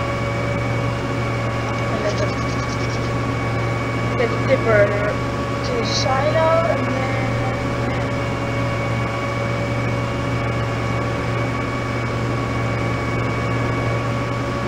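A harvester engine hums steadily.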